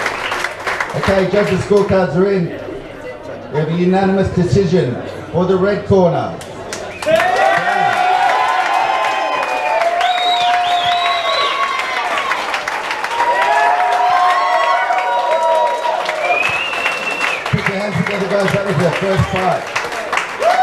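A man announces loudly through a loudspeaker in a large echoing hall.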